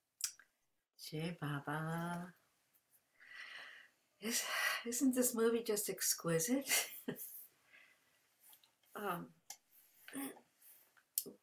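A woman speaks with animation into a nearby microphone.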